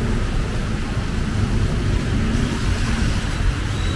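A van drives slowly through shallow floodwater.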